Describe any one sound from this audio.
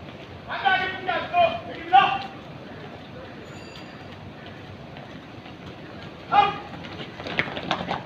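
Boots tramp on pavement as a group marches.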